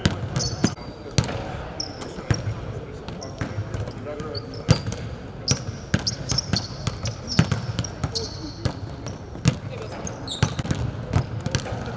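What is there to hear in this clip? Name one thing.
Basketballs bounce on a hard court in a large echoing hall.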